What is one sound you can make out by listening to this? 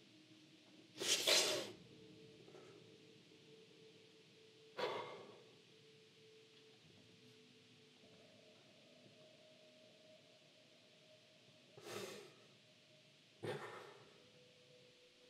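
A man sighs heavily, close by.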